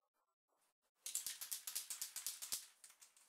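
A brush scrubs rapidly back and forth across a surface.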